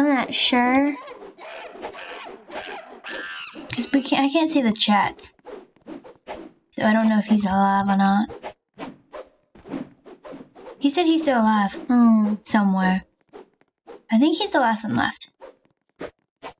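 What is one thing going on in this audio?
Young girls talk excitedly and exclaim close to a microphone.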